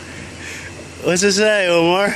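A young man laughs loudly and wildly close by.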